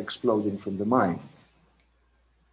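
A man speaks with animation, heard close through an online call.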